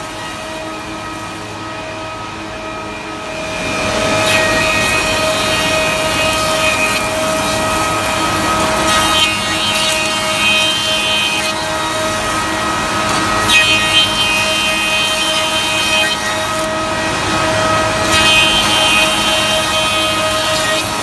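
A woodworking machine hums and whirs steadily.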